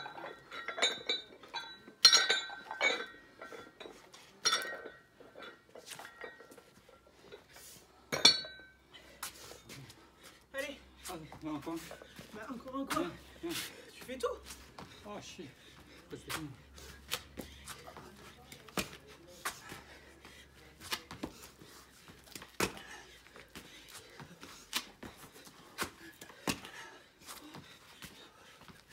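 Hands and feet thump and tap on a stone floor.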